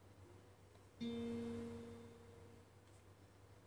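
An acoustic guitar is strummed once and rings out.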